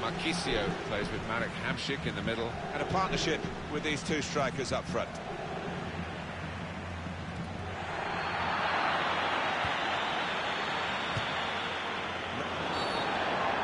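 A large stadium crowd roars steadily, swelling louder partway through.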